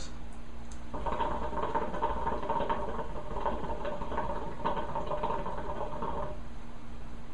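Water bubbles and gurgles as a hookah is smoked.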